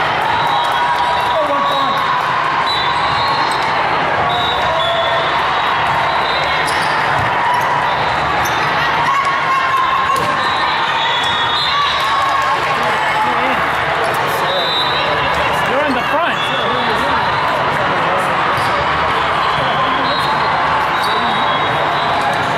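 Shoes squeak sharply on a sports court floor.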